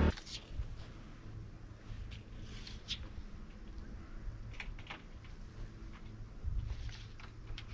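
A tape measure rattles as it is pulled along a wooden board.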